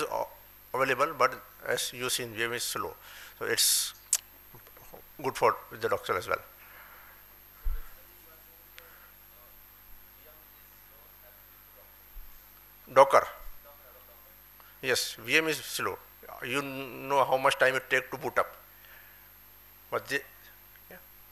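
A man speaks into a microphone in short bursts, heard through a loudspeaker in a large room.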